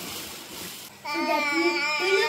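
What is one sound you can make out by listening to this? Young girls sing together loudly and cheerfully close by.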